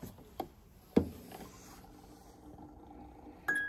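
A music box starts to play softly.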